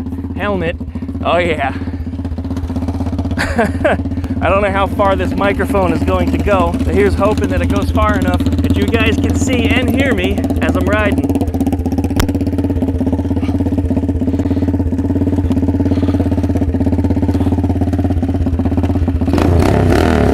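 A single-cylinder four-stroke minibike engine idles.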